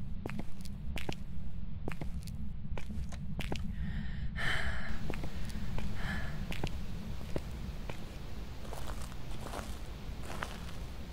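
Footsteps tap steadily on a hard floor and then crunch on gravel outdoors.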